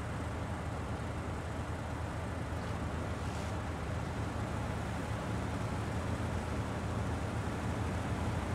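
A heavy truck engine rumbles steadily as it hauls a load.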